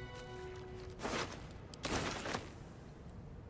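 Magic spells whoosh and crackle in short bursts.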